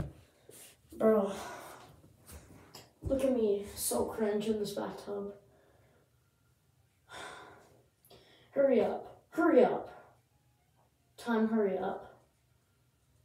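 A young boy talks with animation nearby, in a small echoing room.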